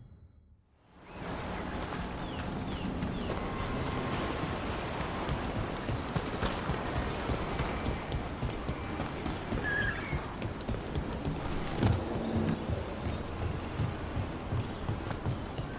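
Footsteps crunch on stone and earth at a run.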